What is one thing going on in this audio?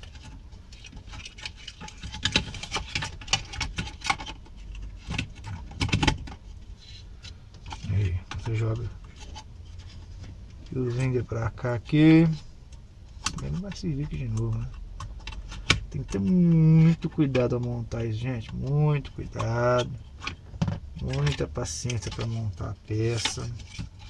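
Small plastic and metal parts click and rattle as they are handled.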